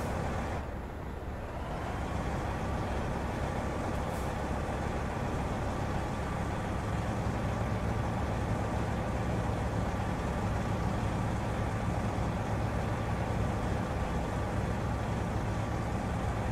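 A diesel truck engine idles with a low rumble.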